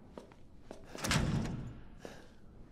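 A locked door rattles in its frame.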